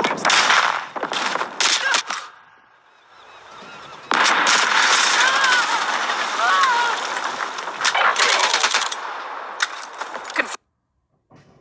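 A submachine gun fires.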